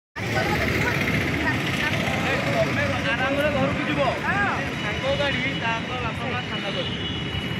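A middle-aged woman argues loudly and excitedly nearby.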